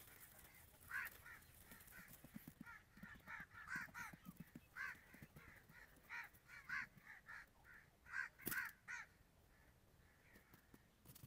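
Small birds chirp in quick, repeated calls close by.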